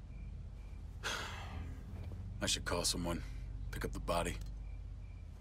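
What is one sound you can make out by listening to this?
A young man speaks quietly and wearily, close by.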